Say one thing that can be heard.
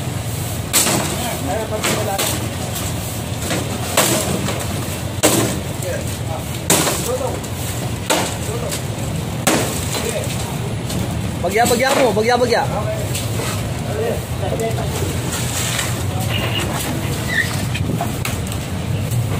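Wooden boards crack and clatter as men pull apart a wooden frame.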